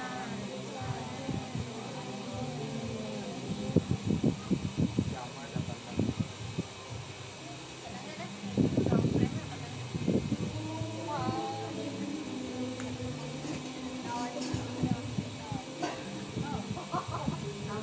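A group of men and women chant together in a steady, droning tone.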